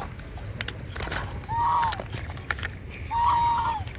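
A fishing reel clicks as line is pulled from it.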